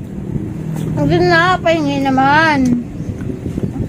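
A young girl speaks in a high, sing-song voice.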